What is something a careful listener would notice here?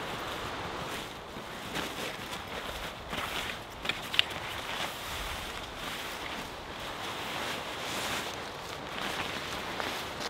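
Dry leaves crackle under the fabric.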